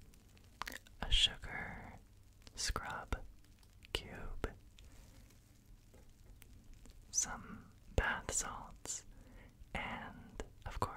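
A young man whispers softly and close into a microphone.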